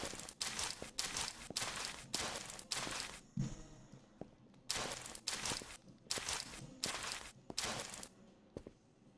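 A mop scrubs a floor in quick, rhythmic strokes.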